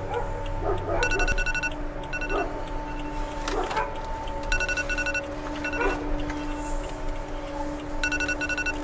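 A phone alarm beeps in short repeated bursts.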